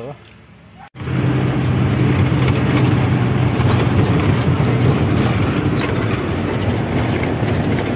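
A truck engine rumbles loudly while driving on a rough road.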